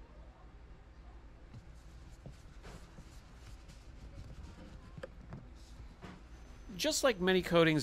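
A cloth rubs softly over a leather seat.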